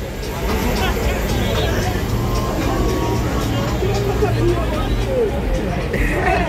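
A crowd of young men chatter nearby outdoors.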